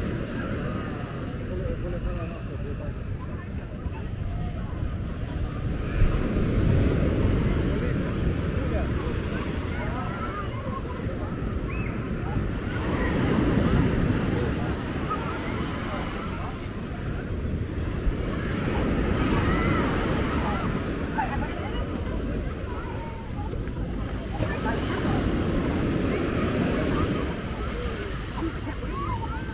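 Children shout and call out in the distance.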